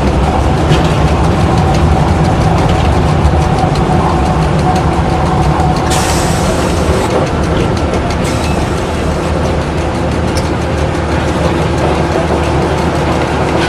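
Wheels clatter and squeal on rails as a train rolls slowly.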